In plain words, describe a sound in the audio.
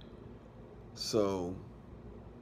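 A man speaks a few words briefly, close to the microphone.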